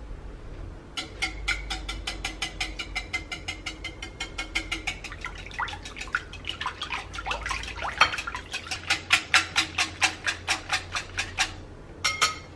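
A whisk beats eggs and milk rapidly in a glass bowl, clinking against its side.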